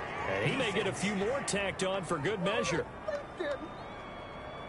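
A man announces a penalty loudly through a stadium loudspeaker.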